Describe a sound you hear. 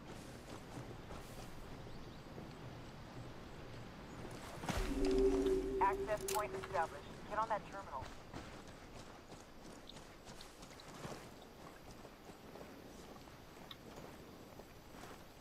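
Footsteps crunch softly on forest ground.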